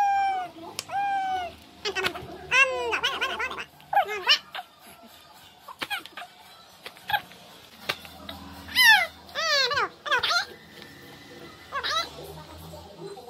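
A baby coos and babbles up close, in high-pitched, rising and falling sounds.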